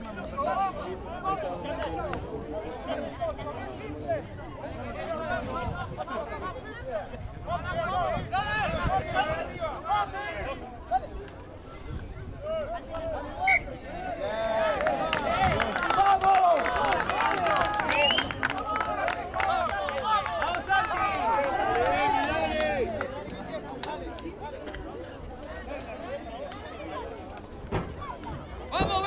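A crowd of spectators nearby shouts and cheers outdoors.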